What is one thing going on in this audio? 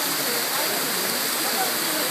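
A fountain splashes steadily nearby.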